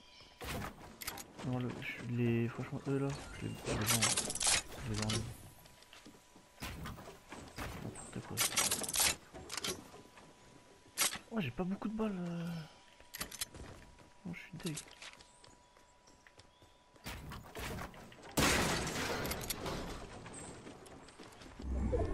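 Wooden walls and ramps snap into place with quick clattering knocks.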